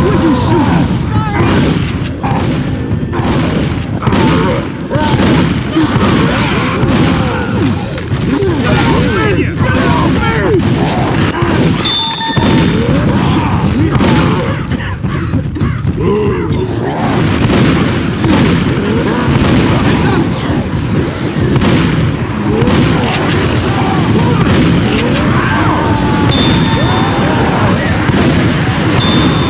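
Shotgun blasts boom one after another.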